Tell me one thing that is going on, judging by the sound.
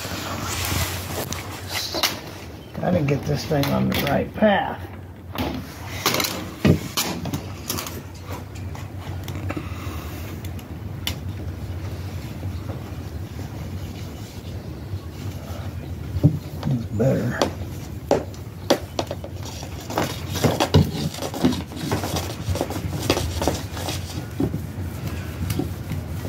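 A plastic film crinkles and rustles as hands handle it.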